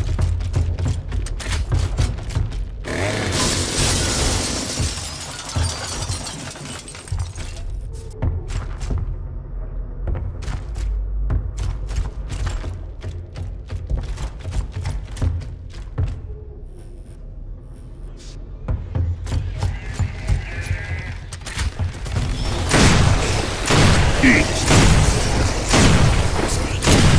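Heavy boots thud and clank steadily on a hard floor.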